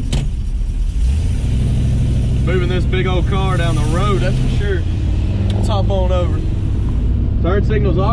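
A car engine grows louder as the car speeds up.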